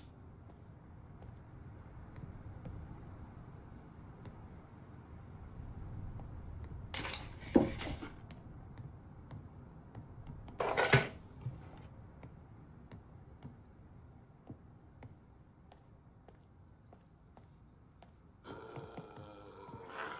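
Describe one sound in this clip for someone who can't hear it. Footsteps thud softly on a wooden floor indoors.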